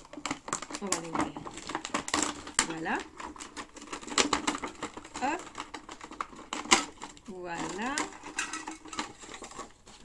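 Plastic packaging crinkles and rustles in a woman's hands.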